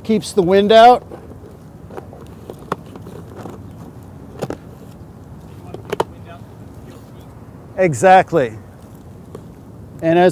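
A plastic lid knocks lightly as it is set down.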